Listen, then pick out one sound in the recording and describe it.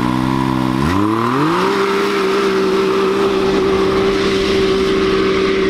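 An off-road vehicle's engine roars steadily as it speeds off.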